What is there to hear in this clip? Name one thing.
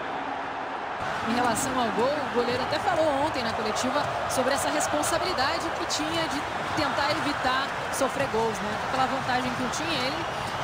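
A large stadium crowd cheers and chants.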